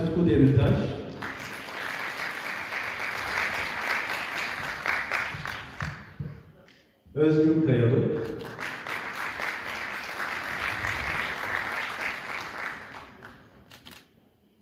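A choir sings in a large echoing hall.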